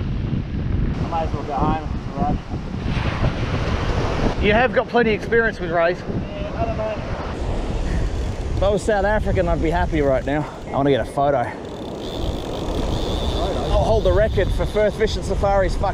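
A man talks with excitement close by.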